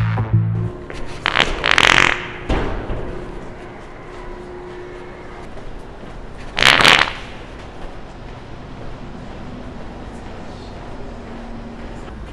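Footsteps walk across a hard floor indoors.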